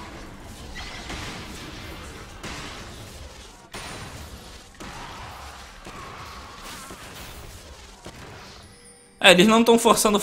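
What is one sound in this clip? Magic spells whoosh and crackle during a game fight.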